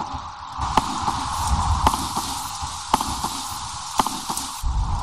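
Single gunshots crack now and then in a video game.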